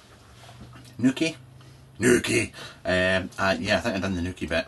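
A man talks casually close to a microphone.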